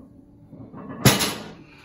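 A heavy barbell clanks down onto the floor.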